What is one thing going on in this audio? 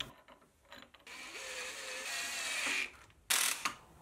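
A cordless drill whirs, driving a screw into metal.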